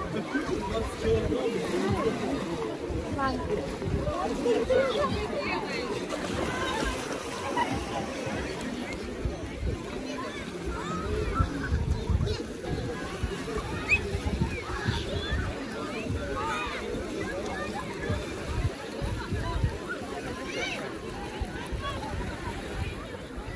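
A crowd of people chatter and call out outdoors.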